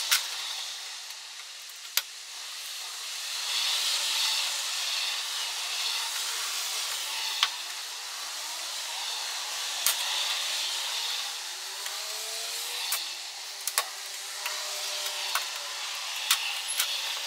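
Plastic pry tools click and snap against a car's trim.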